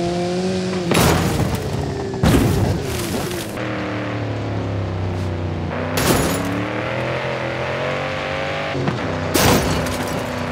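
A car thumps hard as it lands after a jump.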